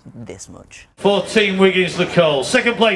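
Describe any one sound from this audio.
A man speaks with animation over a loudspeaker.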